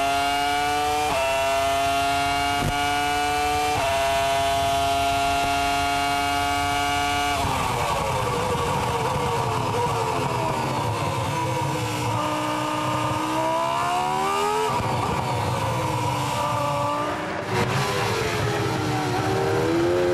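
A racing car engine screams loudly at high revs, heard from close by.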